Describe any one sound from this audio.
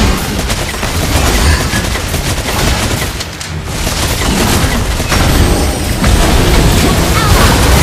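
Magic spells whoosh and crackle in a fight.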